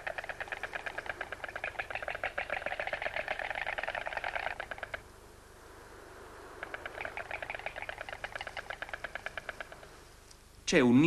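A stork clatters its bill in rapid bursts of wooden rattling.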